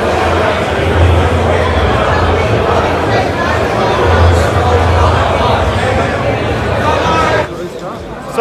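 A large crowd chatters in a large echoing hall.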